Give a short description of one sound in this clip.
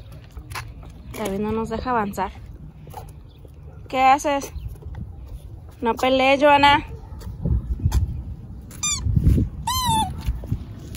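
A young child talks and squeals up close.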